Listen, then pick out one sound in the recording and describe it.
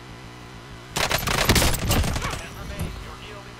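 An automatic rifle fires a rapid burst of gunshots.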